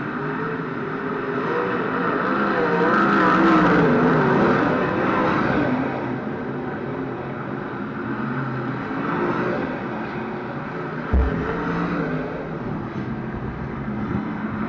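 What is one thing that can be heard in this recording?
Racing engines roar and whine around a dirt track.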